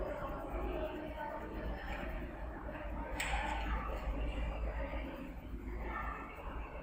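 A marker scratches softly across paper.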